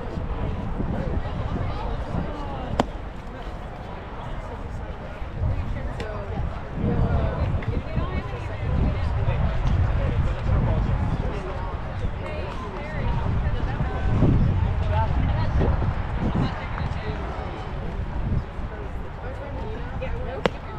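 Wind gusts across an open field and buffets the microphone.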